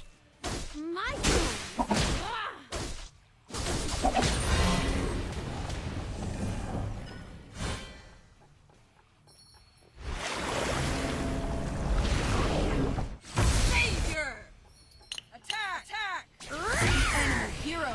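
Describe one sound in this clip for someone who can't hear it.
Fighting sound effects of blows and magic spells burst in quick succession.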